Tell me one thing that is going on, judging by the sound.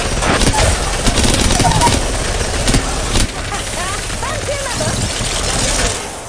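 Gunshots from a video game play through a phone's small speaker.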